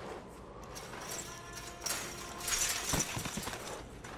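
A chain-link fence rattles.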